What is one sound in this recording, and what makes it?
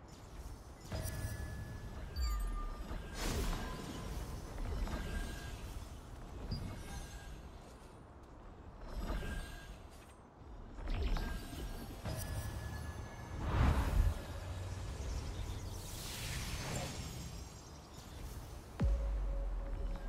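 A bright magical whoosh swells and rings out with a shimmering chime.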